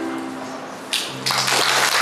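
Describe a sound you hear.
A choir holds a sung chord that ends abruptly.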